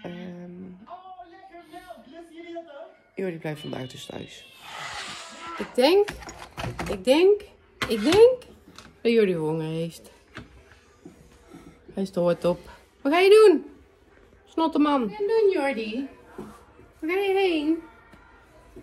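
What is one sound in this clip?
A woman talks close by with animation.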